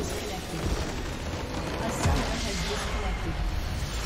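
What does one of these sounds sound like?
A base structure blows up with a deep rumbling blast.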